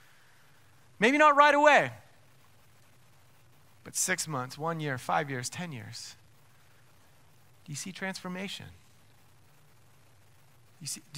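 A man speaks with animation into a microphone, pausing between phrases.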